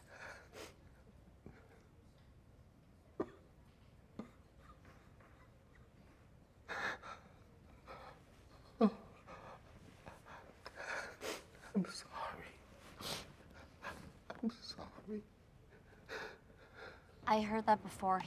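An elderly man sobs and sniffles.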